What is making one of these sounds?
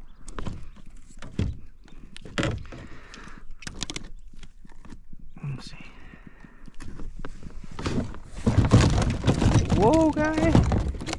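Hands rustle and knock against a fishing net and gear close by.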